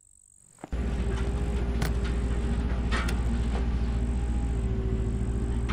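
A road roller engine rumbles steadily.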